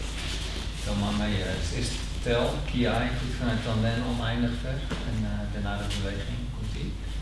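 A man speaks calmly in an echoing hall.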